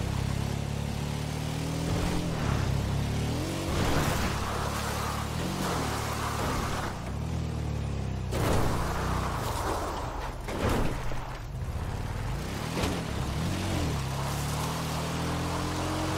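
An engine rumbles and revs up and down as an off-road vehicle drives.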